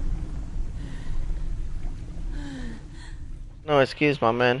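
Water sloshes and laps softly around a man wading.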